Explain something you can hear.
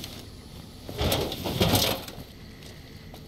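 An explosion booms and crackles.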